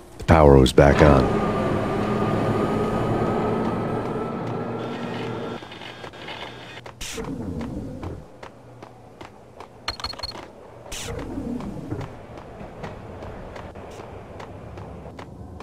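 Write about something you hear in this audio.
Footsteps walk at a steady pace across a hard floor.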